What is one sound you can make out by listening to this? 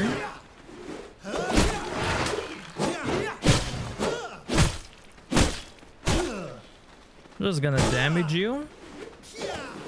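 Blades strike and slash in a close fight.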